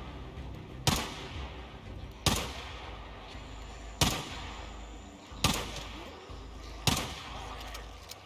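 A pistol fires single loud shots at a steady pace, echoing outdoors.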